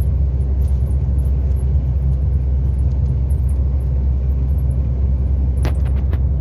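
A vehicle's engine hums low and steady from inside as it drives along a road.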